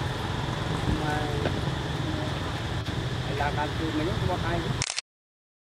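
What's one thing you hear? A young monkey squeaks softly nearby.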